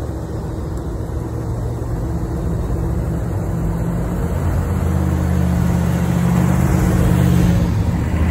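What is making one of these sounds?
A car engine rumbles louder as the car drives slowly closer outdoors.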